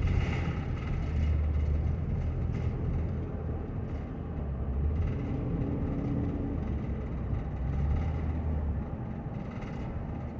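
A car engine hums steadily with a low rumble of tyres on the road inside a moving car.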